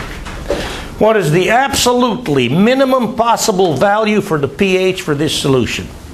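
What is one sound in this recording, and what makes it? An elderly man speaks clearly to a room, heard close by.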